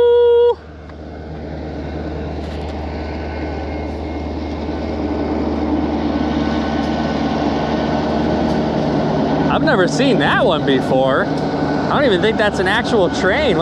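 A train rumbles across a bridge, growing louder.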